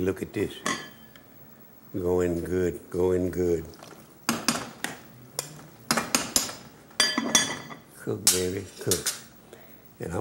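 A metal pot lid clinks against a pot.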